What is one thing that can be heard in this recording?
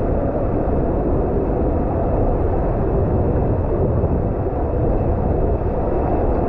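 Water rushes and rumbles steadily through a hollow tube.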